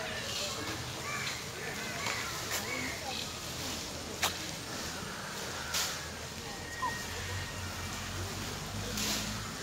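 Dry leaves rustle as an elephant brushes its trunk over them.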